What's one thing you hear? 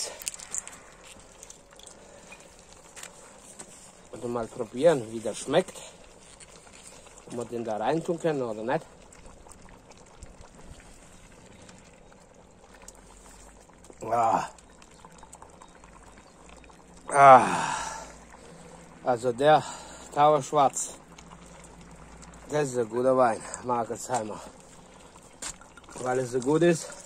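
A pot of stew bubbles and simmers.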